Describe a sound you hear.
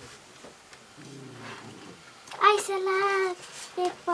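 Paper rustles as a child unfolds it.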